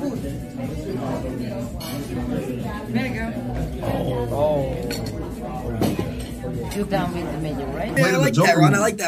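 A young man talks casually close by.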